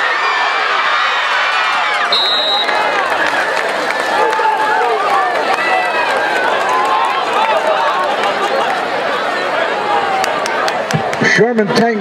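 A large crowd cheers and shouts in a stadium.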